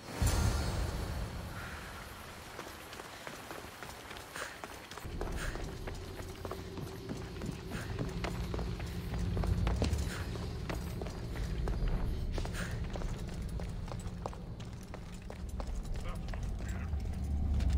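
Footsteps patter on stone as someone runs.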